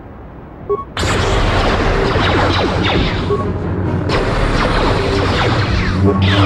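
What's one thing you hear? A blaster pistol fires rapid shots.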